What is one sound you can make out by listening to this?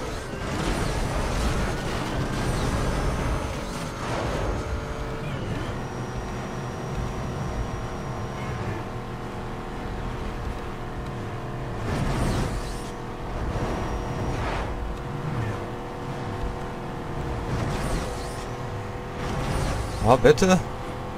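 Wind rushes past a fast car.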